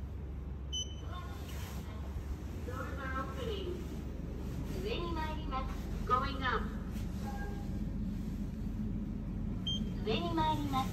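An elevator gives short high beeps.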